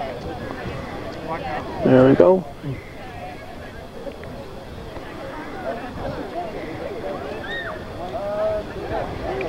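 A crowd of young people chatters nearby outdoors.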